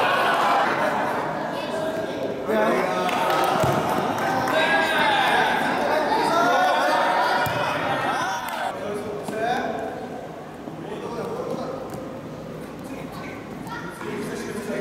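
A crowd of children shouts and cheers in an echoing hall.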